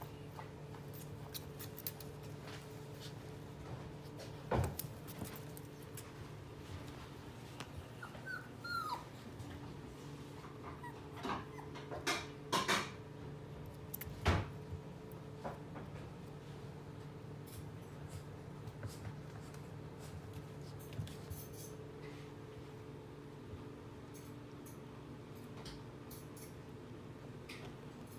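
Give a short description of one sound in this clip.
A puppy tugs and chews on a plush toy.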